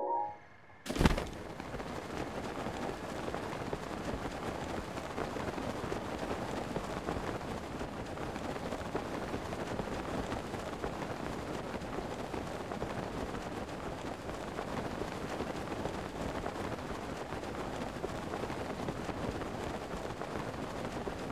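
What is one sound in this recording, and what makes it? Wind rushes steadily past a glider high in the air.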